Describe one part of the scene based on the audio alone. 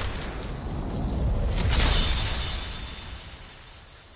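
A glassy barrier cracks and shatters.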